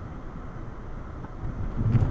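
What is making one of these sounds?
Tyres roll over a rough railway crossing with a thump.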